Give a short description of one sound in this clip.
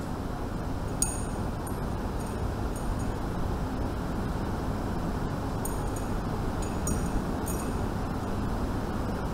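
Small glass and metal items clink on a table.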